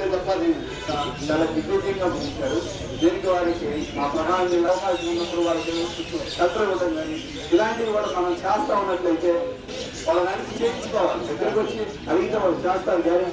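A man speaks with animation into a microphone, heard through a loudspeaker outdoors.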